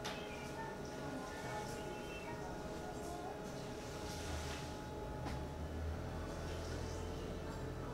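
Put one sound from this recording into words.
A man talks quietly into a phone nearby.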